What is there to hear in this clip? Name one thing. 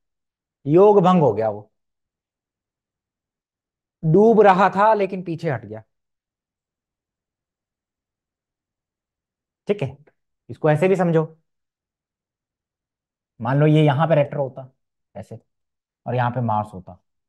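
A man speaks clearly into a close microphone, explaining in short bursts with pauses.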